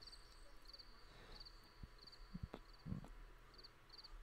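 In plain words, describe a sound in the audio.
Soft game footsteps tap.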